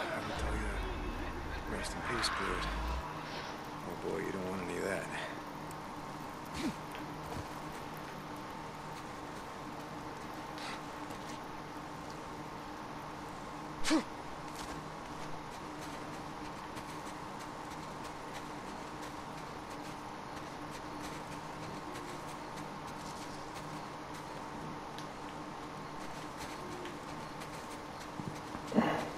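Footsteps crunch on snow at a walking pace.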